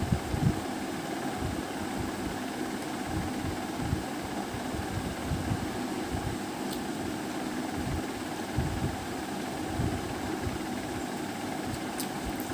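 Fingers tear a piece of fried flatbread.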